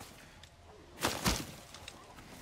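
A sword slashes with a sharp hit.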